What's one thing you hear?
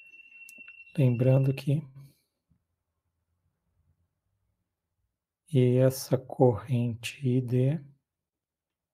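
A man speaks calmly through an online call microphone, in short bursts with pauses.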